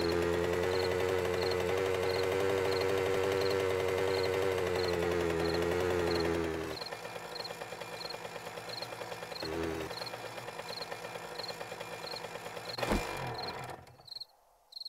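A motorbike engine hums steadily, then drops to a quieter idle.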